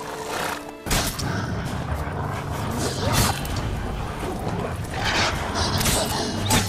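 Wolves snarl and growl during a fight.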